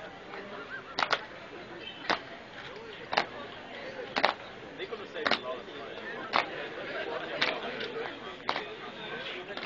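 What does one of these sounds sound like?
Boots stamp on stone in a steady marching beat.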